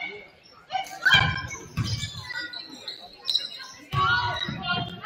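A basketball bounces on the floor with dull thuds.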